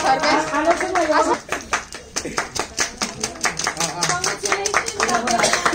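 A group of young people sing together nearby.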